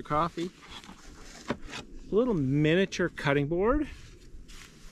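A man speaks with animation close by, outdoors.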